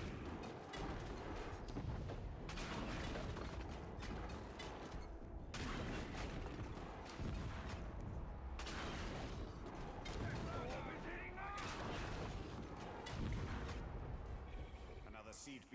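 Fiery blasts boom and roar in bursts.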